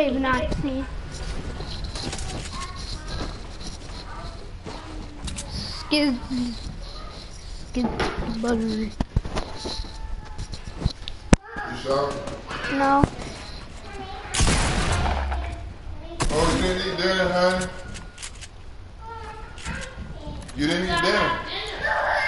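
Wooden walls and ramps snap into place with quick hollow knocks.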